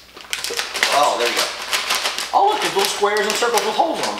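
A plastic snack bag rustles and crinkles.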